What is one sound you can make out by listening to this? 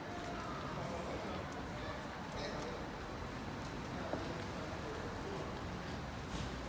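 Footsteps tap on a paved sidewalk.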